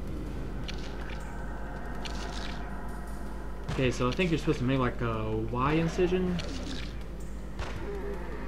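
A scalpel slices wetly through flesh.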